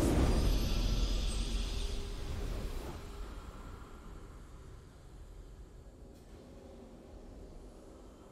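A triumphant video game fanfare swells and slowly fades away.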